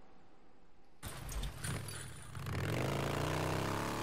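A motorcycle engine roars and revs up close.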